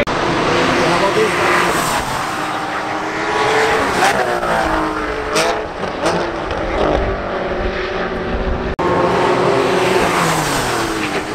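Car engines rev up and down sharply between gear changes.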